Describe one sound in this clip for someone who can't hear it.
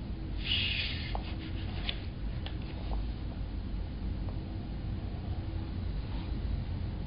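An older man speaks calmly and close to a microphone.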